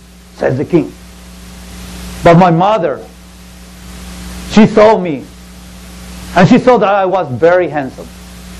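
A man speaks loudly and theatrically, in bursts, through a microphone in an echoing room.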